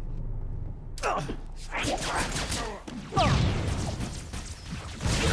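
Gunfire bursts rapidly in a game.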